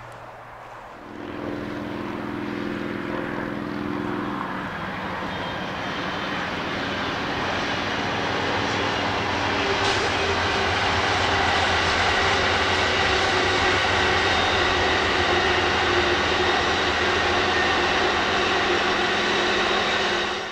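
A passing train rumbles and clatters, growing louder as it comes closer.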